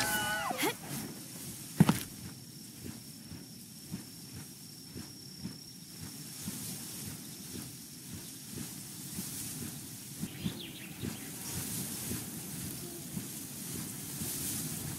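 Wings flap with soft, regular whooshes.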